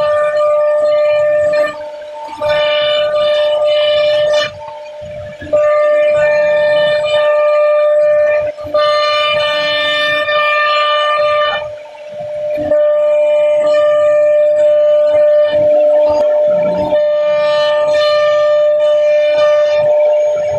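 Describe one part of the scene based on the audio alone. A router spindle whines steadily as it cuts into wood.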